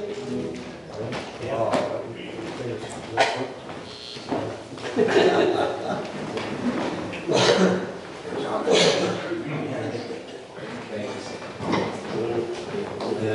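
A man talks casually nearby in an echoing room.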